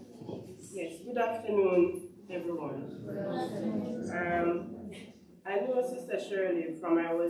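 A young woman speaks into a microphone, reading out over a loudspeaker in an echoing room.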